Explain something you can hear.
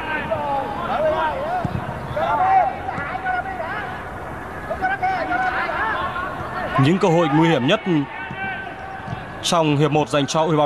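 A large stadium crowd chants and cheers.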